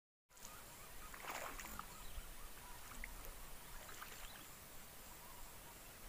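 A fish splashes at the surface of still water.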